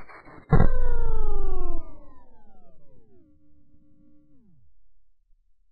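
A game's falling tones sound and fade.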